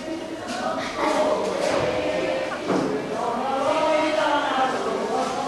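A young man speaks loudly from a stage, heard from a distance in a hall.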